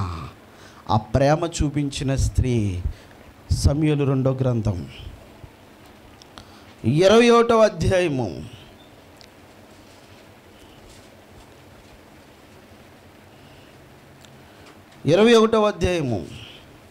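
A man speaks with feeling into a microphone, in short bursts with pauses.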